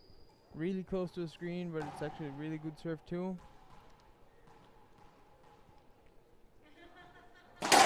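A ball bounces lightly on a wooden floor.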